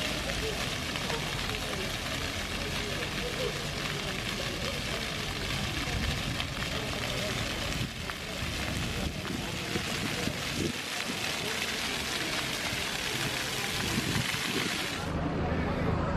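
Water from fountain jets splashes steadily onto wet paving.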